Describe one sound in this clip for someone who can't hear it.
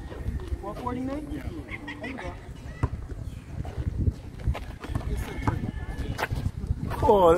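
A basketball bounces on a concrete court.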